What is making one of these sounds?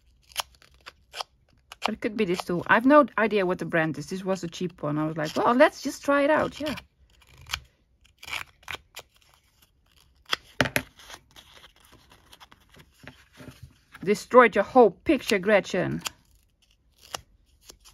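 A small tool scrapes against paper.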